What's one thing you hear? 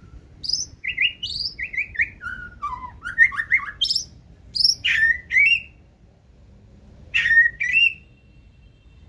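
A songbird sings loud, varied whistling phrases close by.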